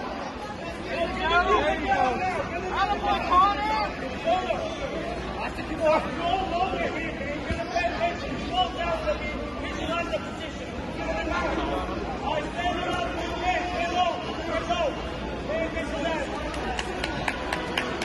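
Spectators cheer and shout encouragement loudly.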